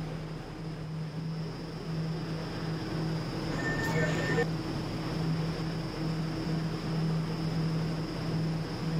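A subway train's motor hums in a steady pulsing drone.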